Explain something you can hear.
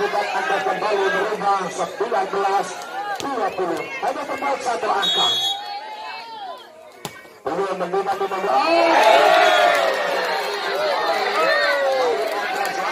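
A crowd shouts and cheers loudly outdoors.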